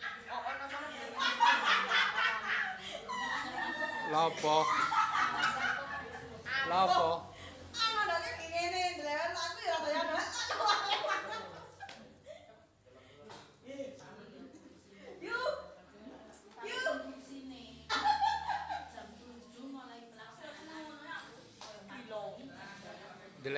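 People laugh nearby.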